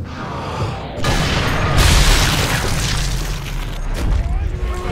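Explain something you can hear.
A rifle shot booms and echoes away.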